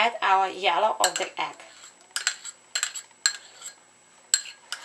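A metal spoon clinks against a ceramic bowl.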